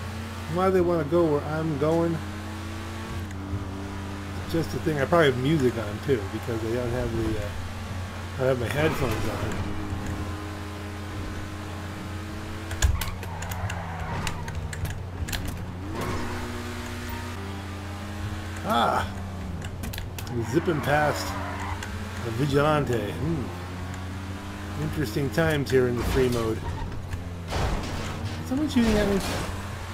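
A sports car engine roars and revs up and down.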